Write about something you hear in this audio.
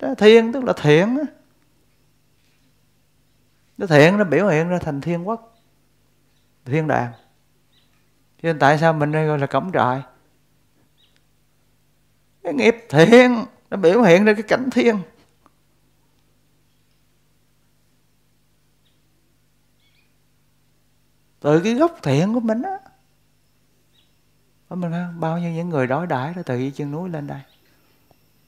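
A man speaks calmly into a nearby microphone, in short phrases with long pauses.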